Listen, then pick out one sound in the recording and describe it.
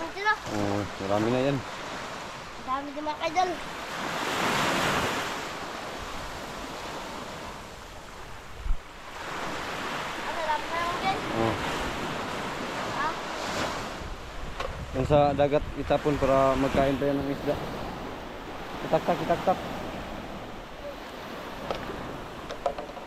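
A young boy talks with animation nearby.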